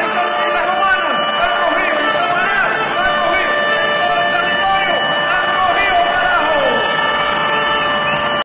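People in a crowd blow whistles that slide up and down in pitch.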